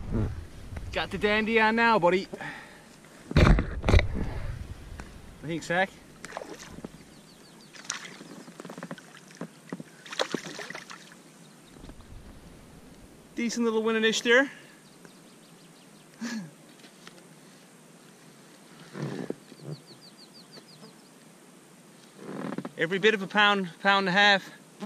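An adult man talks close to the microphone.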